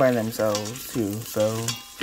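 A spoon stirs in a metal pot.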